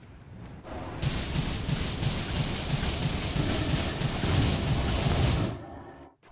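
Video game combat clashes with rapid hits and bursts.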